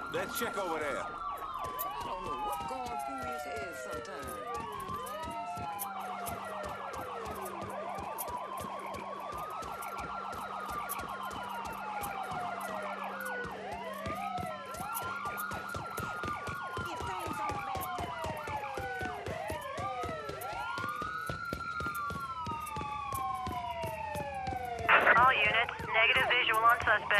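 Footsteps run quickly over hard ground.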